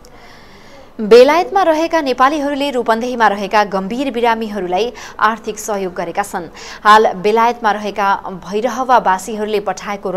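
A young woman reads out the news clearly into a microphone.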